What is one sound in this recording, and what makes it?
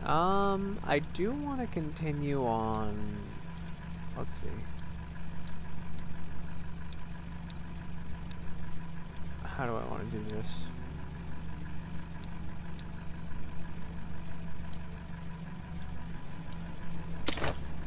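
Soft menu clicks tick each time a selection moves.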